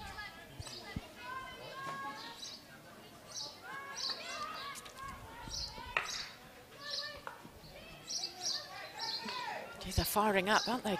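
Hockey sticks strike a ball with sharp cracks.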